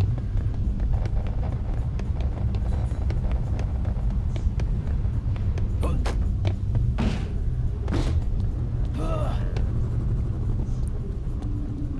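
Footsteps clank steadily up metal stairs.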